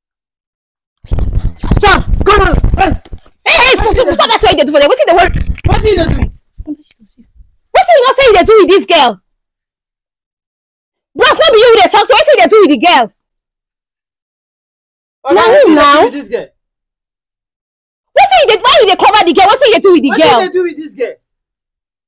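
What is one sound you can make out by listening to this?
A woman speaks loudly and with emotion nearby.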